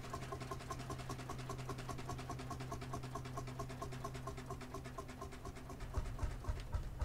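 A tractor engine idles with a steady low hum.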